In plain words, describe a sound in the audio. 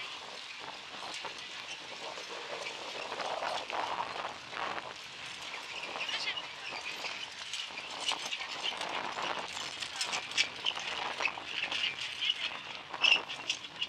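Carriage wheels rattle and creak over the ground.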